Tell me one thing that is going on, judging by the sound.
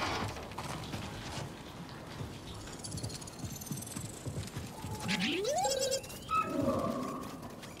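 Footsteps scuff across rocky ground.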